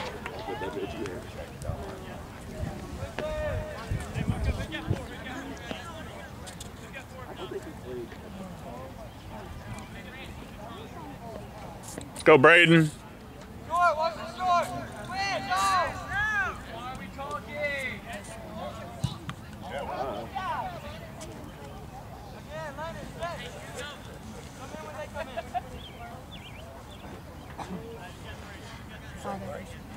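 Adult men and women talk close by, outdoors.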